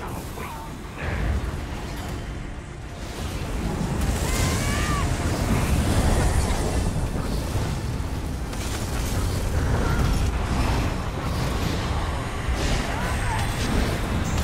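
Magic blasts and impacts crash repeatedly.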